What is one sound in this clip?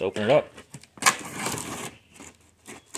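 Packing tape rips off a cardboard box.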